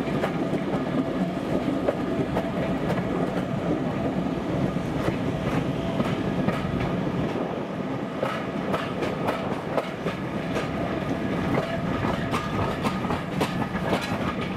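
A train rumbles steadily along the track from inside a carriage.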